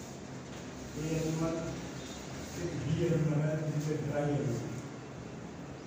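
A man speaks calmly, explaining.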